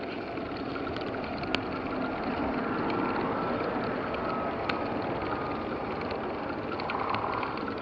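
A bicycle rattles and clicks over small bumps.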